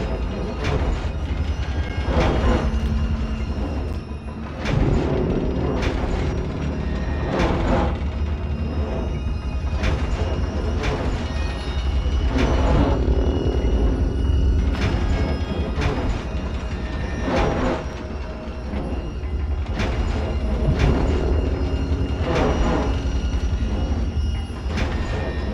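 A long limb sweeps and scrapes across a hard floor again and again.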